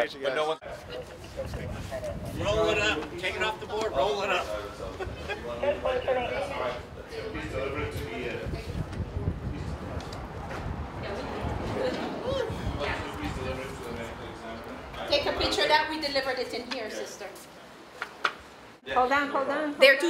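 Several men and women talk nearby in overlapping voices.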